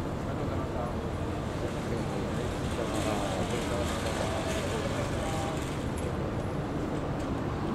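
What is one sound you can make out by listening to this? A police car's engine hums as it drives by.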